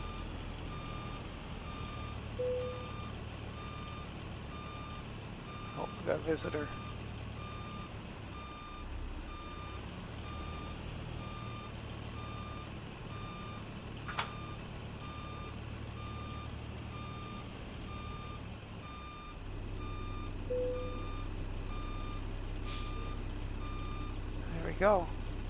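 A reversing alarm beeps steadily.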